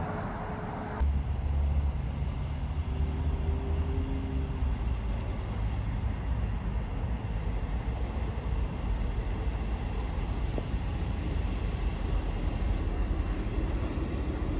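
A diesel train rumbles slowly as it approaches.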